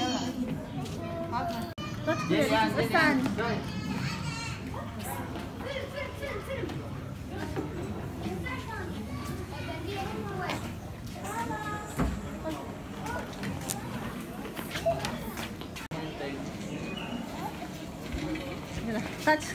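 Children and adults chatter nearby in an echoing hall.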